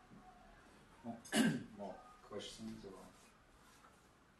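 An elderly man speaks briefly and calmly nearby.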